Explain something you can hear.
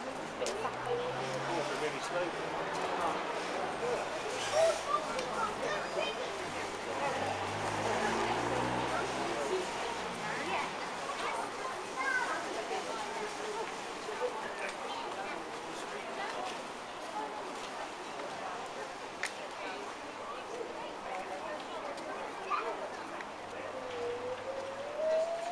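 Men and women chat and murmur all around outdoors.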